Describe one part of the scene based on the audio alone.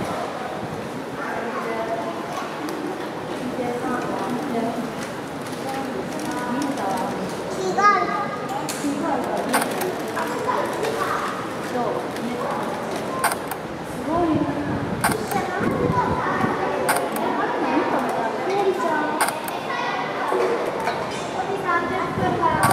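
A panda crunches and chews bamboo.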